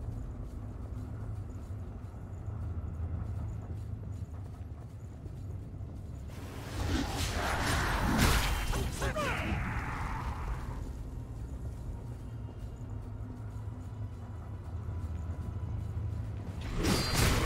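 Footsteps run over a stone floor.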